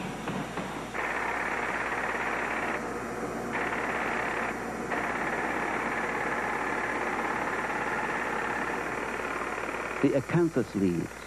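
A pneumatic chisel chatters against stone.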